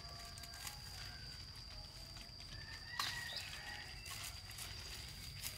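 Stiff leaves rustle as a person brushes through plants.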